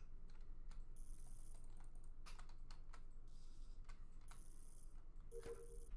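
Short electric buzzes sound as wires are connected.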